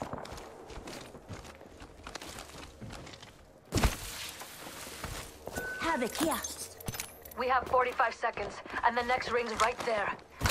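Footsteps run across hard ground.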